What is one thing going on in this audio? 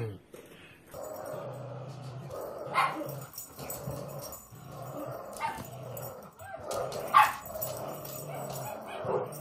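A dog growls low and repeatedly while tugging.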